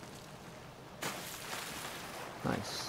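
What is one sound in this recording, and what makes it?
A body plunges into water with a splash.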